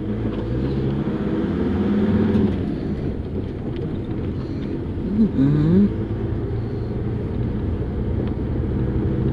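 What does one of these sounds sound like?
A car engine hums steadily while driving slowly along a street.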